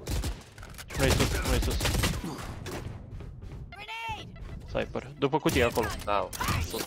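Rapid gunshots ring out.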